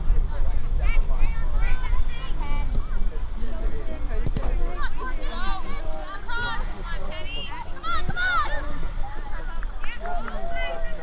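Young women shout and call out across an open field.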